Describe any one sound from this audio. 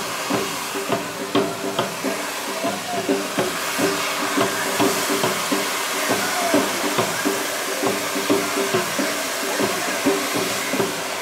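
Fireworks fizz and crackle with a loud hissing roar.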